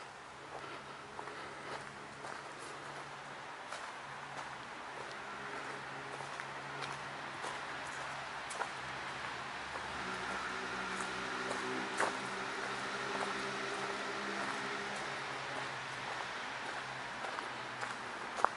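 Footsteps crunch slowly on a gravel path.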